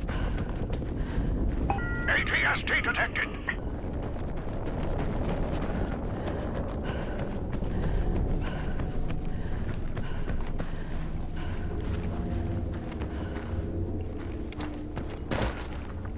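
Footsteps crunch steadily over sand and rock.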